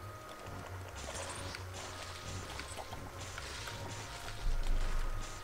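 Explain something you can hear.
A laser beam hums and crackles.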